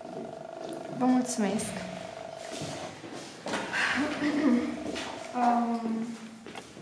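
A young woman laughs and talks softly nearby.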